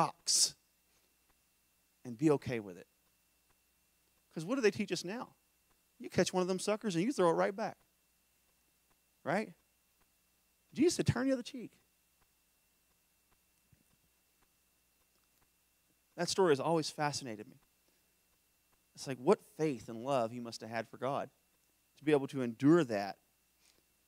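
A man speaks calmly into a microphone in a large echoing hall, pausing between phrases.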